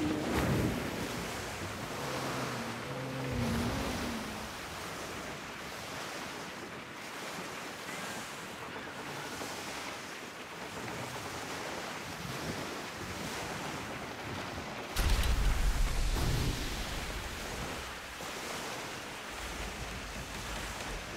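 Water rushes and splashes against a sailing ship's hull as it cuts through waves.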